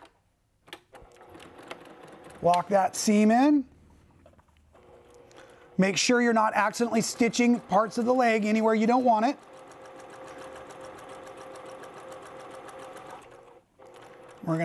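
A sewing machine whirs and clatters steadily as it stitches.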